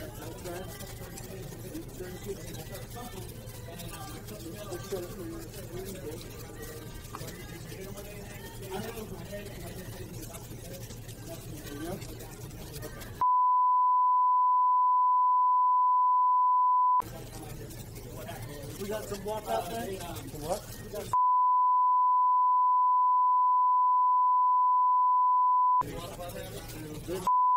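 A crowd of men and women talk over one another nearby.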